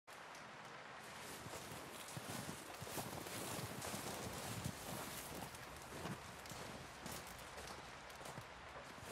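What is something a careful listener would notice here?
Boots crunch steadily through deep snow.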